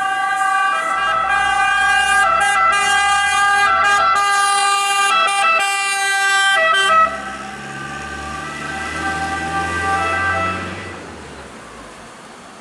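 A truck engine rumbles as it drives by.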